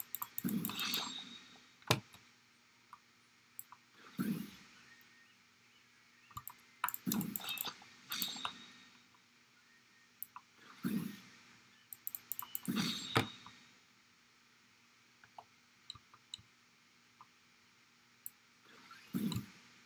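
Grappling hooks fire and reel with sharp clicks.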